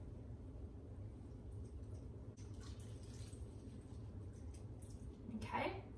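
Water pours from a glass into a pot.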